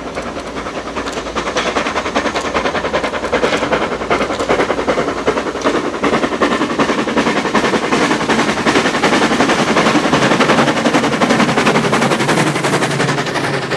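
A steam locomotive chuffs hard as it approaches and passes close by.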